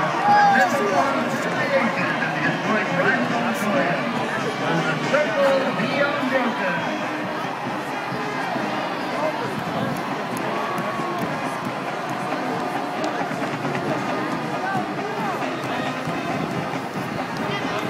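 A marching band plays loudly across the field.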